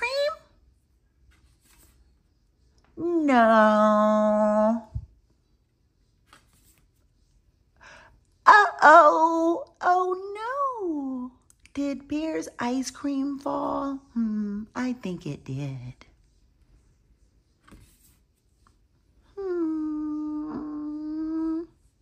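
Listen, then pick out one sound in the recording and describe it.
A stiff book page flips over.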